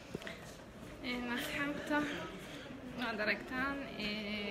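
A young woman talks with animation close to a phone's microphone.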